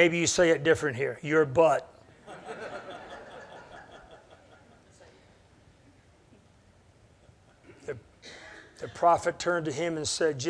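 A middle-aged man speaks with emphasis into a microphone in a room with some echo, pausing in between.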